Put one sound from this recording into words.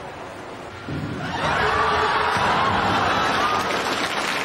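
A body hits the water with a loud splash.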